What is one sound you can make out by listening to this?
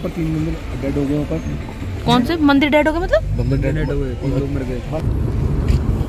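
A man talks inside the car.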